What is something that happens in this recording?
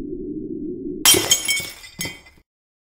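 Glass shatters with a loud crash.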